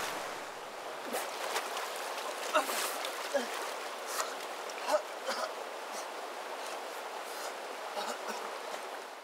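Water splashes as someone thrashes in it.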